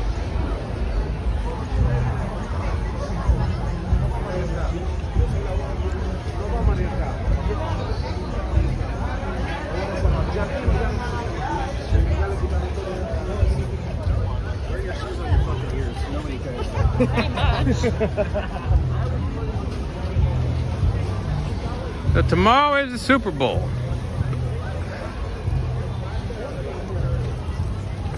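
Men and women chat nearby in a crowd on the street.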